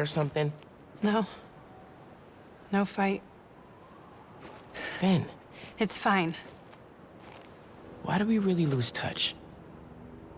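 A young woman speaks softly and calmly.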